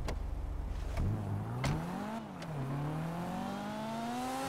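A car engine revs up and the car pulls away.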